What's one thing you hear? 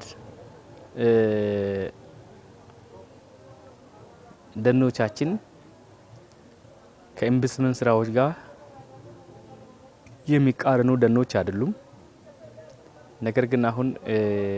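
A man speaks calmly into a clip-on microphone, close by, in short phrases with pauses.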